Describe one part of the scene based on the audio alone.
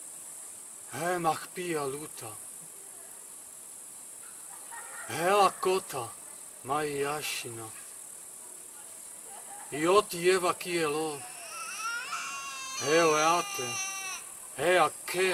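A man chants in a loud, wavering voice outdoors, close by.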